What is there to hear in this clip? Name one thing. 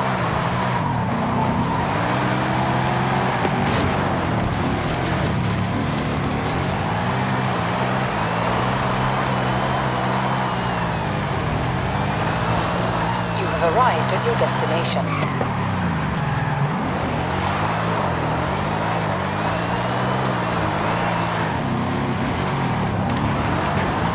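A car engine roars and revs up and down, changing gears.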